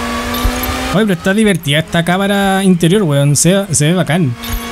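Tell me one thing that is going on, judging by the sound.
A race car engine revs up and down sharply in quick bursts.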